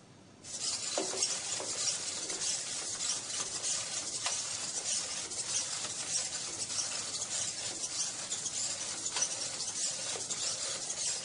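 A small robot's feet tap on a hard surface.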